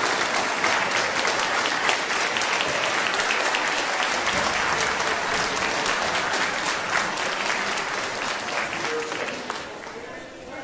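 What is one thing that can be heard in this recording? A large crowd applauds in an echoing hall.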